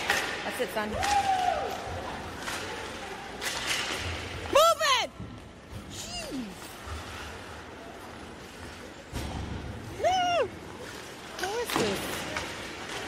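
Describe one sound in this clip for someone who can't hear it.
Young players shout loudly across the rink.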